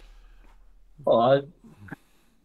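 Another man answers briefly over an online call.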